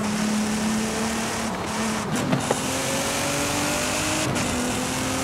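A sports car engine roars at high speed, its pitch dropping and climbing as gears shift.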